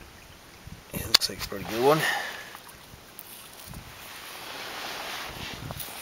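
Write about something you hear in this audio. Pebbles click and scrape as a hand picks one up from gravel.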